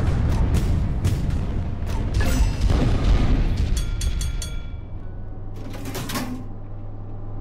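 Heavy naval guns fire in loud, booming blasts.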